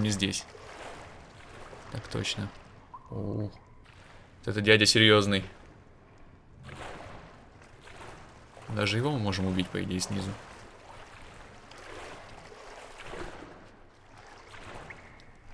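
Water splashes and sloshes as a swimmer paddles.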